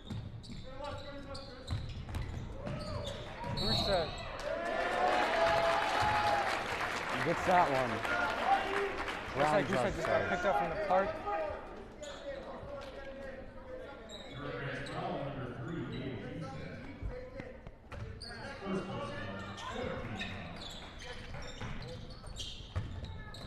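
A crowd cheers and shouts in a large echoing gym.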